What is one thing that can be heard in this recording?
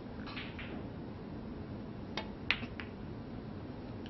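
Snooker balls click together on the table.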